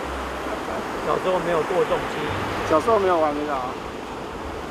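A middle-aged man speaks calmly and close by.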